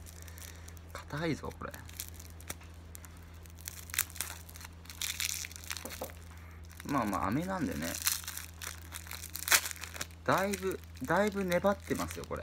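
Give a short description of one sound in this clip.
A plastic candy wrapper crinkles as it is unwrapped.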